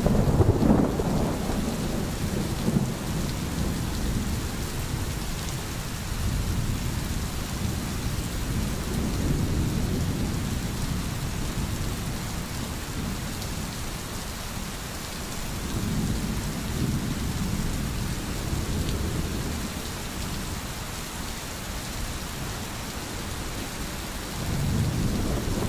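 A stream gurgles and flows over stones.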